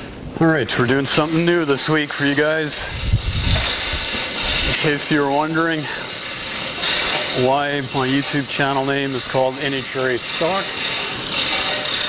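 A garage door rattles and rumbles as it rolls open.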